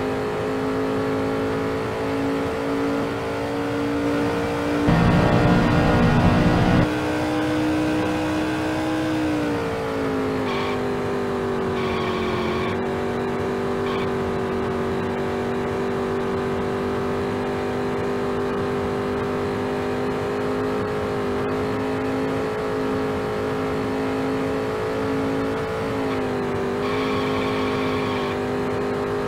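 A racing car engine roars steadily at high revs, dipping briefly in pitch.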